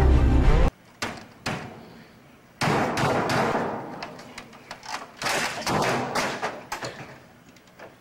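A man pounds a keyboard with loud, hard blows.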